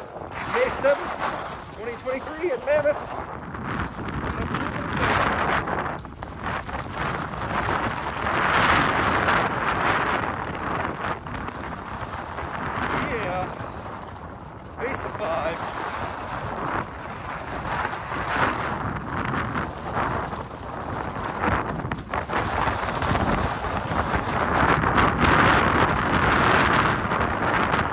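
Wind rushes past outdoors.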